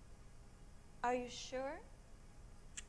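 A young woman speaks a short phrase, close by.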